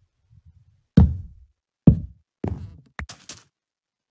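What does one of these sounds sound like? Wooden blocks thud softly as they are placed.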